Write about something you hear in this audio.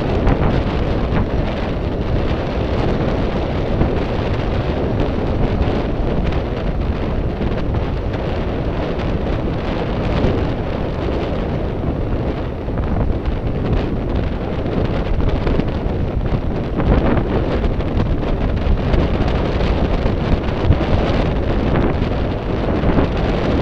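Strong wind roars steadily across the microphone outdoors.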